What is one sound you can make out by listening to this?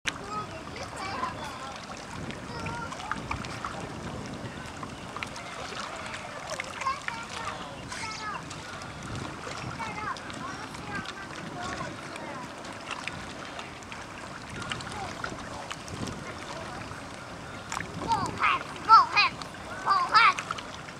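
A motorboat engine drones across the water.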